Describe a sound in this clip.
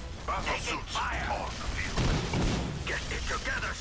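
Laser guns fire in rapid bursts.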